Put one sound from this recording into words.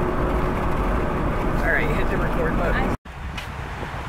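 A car engine hums while driving along a road.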